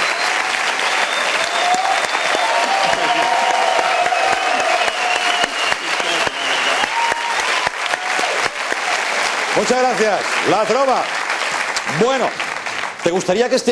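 A crowd claps and cheers loudly.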